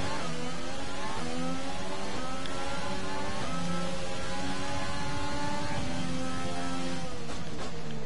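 A racing car engine screams at high revs, shifting up through the gears.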